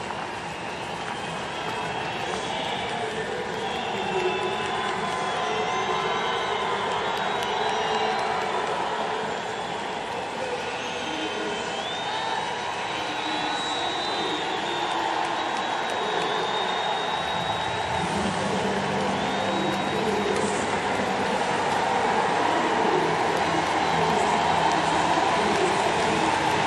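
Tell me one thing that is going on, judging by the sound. A large crowd cheers and roars steadily in a big open stadium, growing louder.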